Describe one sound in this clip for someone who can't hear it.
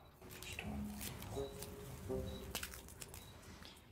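Bread crackles as it is torn by hand.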